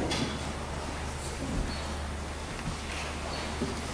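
An elderly man reads out calmly through a microphone in a large echoing hall.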